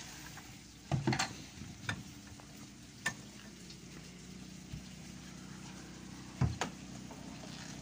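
Boots thud on a metal truck bed.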